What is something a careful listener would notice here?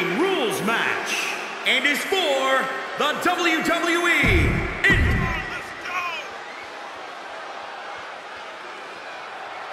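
A large crowd cheers in an echoing arena.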